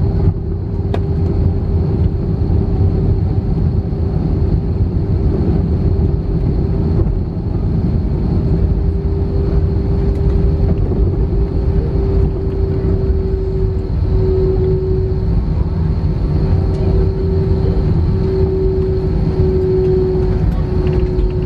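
Jet engines roar loudly as a plane slows on the runway.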